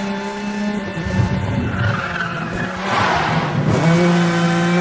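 Tyres skid and crunch on a loose dirt road.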